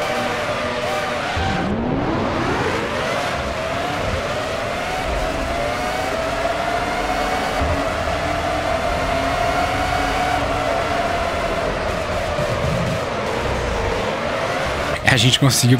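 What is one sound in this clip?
A racing car engine whines loudly, rising in pitch as it shifts up through the gears.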